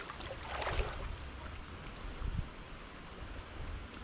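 A person wades through shallow water with soft splashes.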